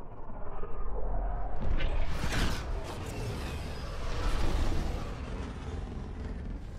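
A spaceship's engines roar as it flies past.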